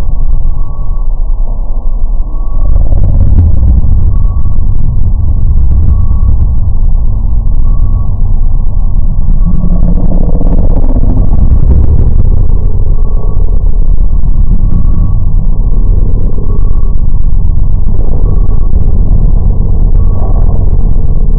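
A boy speaks close to a microphone, slowed down and distorted.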